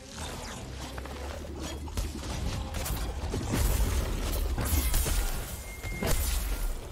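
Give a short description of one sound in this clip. A huge beast growls with a deep rumble.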